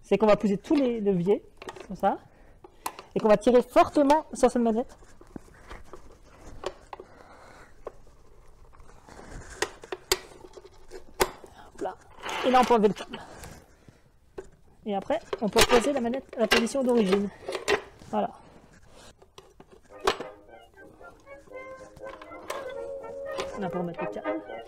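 Metal clicks and clanks as a winch is handled.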